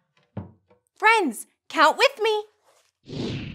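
A young woman speaks brightly and with animation, close by.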